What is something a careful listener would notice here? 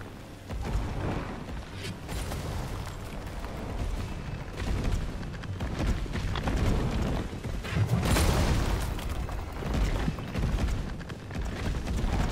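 Footsteps run on hard pavement.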